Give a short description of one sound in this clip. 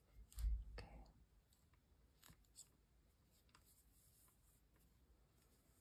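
Small metal clips click softly as they are fastened onto knitted fabric.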